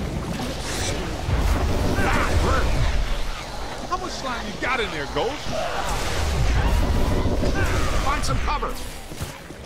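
Energy beams crackle and hum as they fire.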